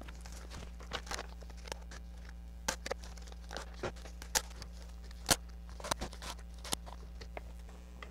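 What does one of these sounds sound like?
Paper shapes tap and rustle against a board.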